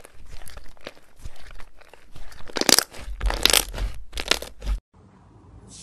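Slime squishes and squelches as hands knead it, with sharp crackling pops.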